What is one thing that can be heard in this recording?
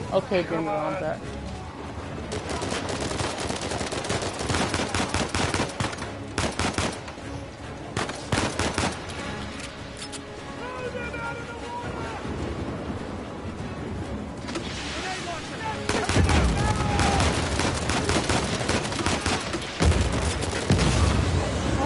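Stormy sea waves roar and crash.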